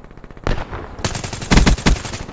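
A rifle fires in rapid bursts, loud and sharp.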